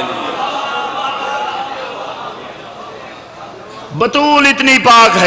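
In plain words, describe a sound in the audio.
A young man recites loudly into a microphone, echoing through loudspeakers.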